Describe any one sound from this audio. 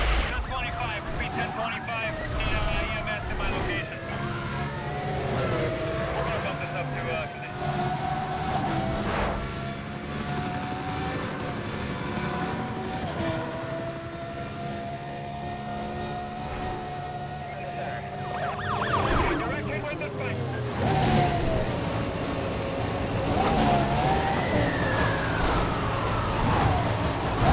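Police sirens wail and glide up and down.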